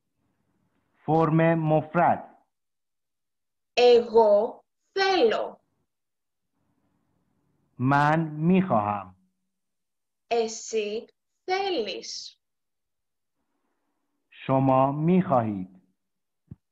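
A young woman speaks calmly and clearly into a microphone, in short phrases with pauses.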